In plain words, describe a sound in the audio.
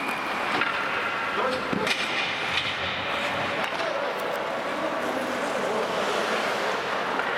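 Ice skates scrape across the ice in a large echoing hall.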